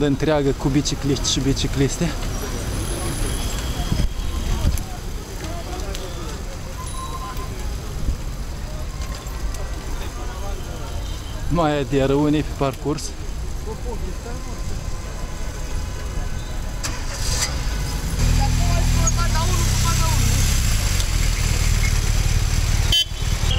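Many bicycles roll and click along a street.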